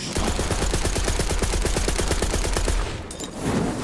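A rapid-fire gun shoots in a fast, steady burst.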